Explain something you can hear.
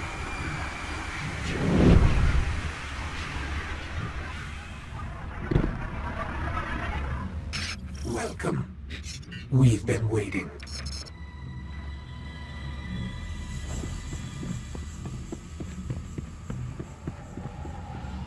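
A deep, low rumble drones steadily.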